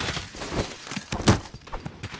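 A blow lands in a hand-to-hand fight.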